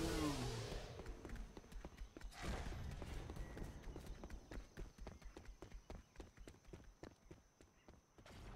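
Footsteps patter quickly on ground and wooden steps.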